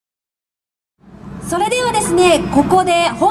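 A woman speaks brightly through a loudspeaker.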